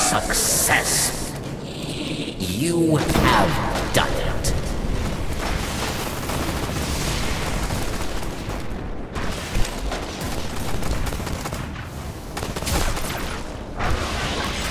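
Rifle shots crack and boom.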